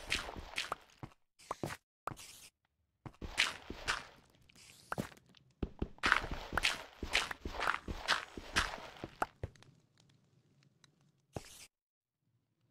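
A shovel digs into gravel and dirt with quick crunching scrapes.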